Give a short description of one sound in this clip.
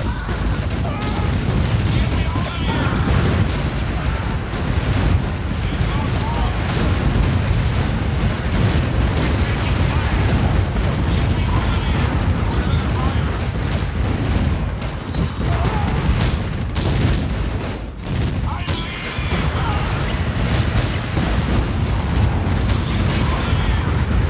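Explosions boom and rumble over and over.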